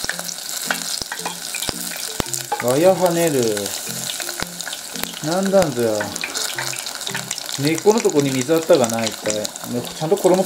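Hot oil sizzles and crackles steadily.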